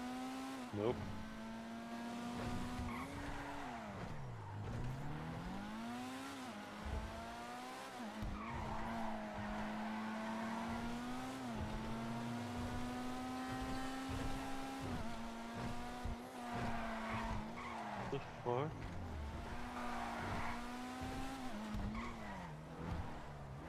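A sports car engine roars, revving up and down.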